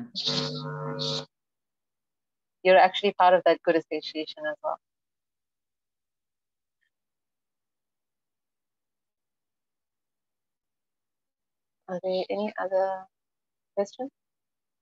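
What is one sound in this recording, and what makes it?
A young woman speaks calmly over an online call, with pauses.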